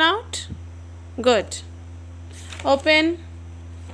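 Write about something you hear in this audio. Paper rustles as a book's page is turned.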